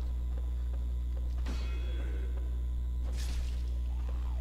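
A sword slashes and strikes in quick blows.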